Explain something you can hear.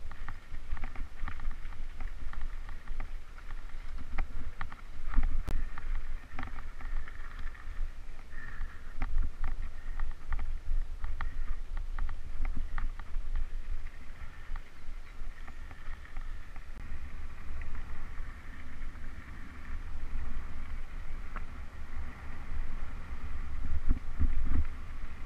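Wind rumbles and buffets across the microphone.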